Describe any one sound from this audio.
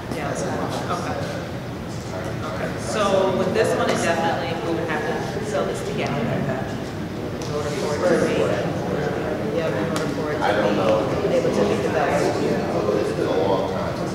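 Several women talk with each other close by, in a large echoing hall.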